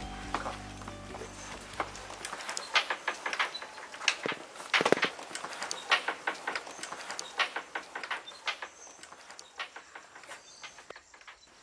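Metal valves squeak and clank as a man turns them by hand.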